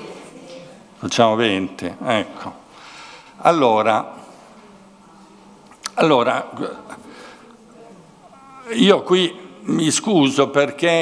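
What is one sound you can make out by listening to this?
A middle-aged man speaks calmly into a microphone, in bursts with pauses.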